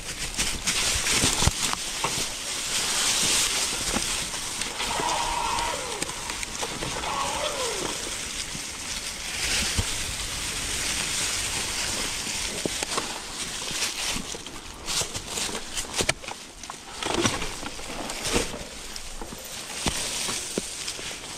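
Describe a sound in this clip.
Wind rushes past outdoors.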